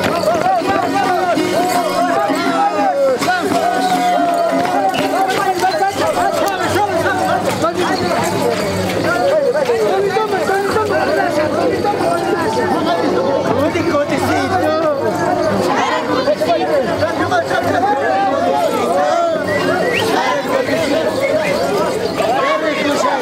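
A crowd of men and women sings loudly outdoors.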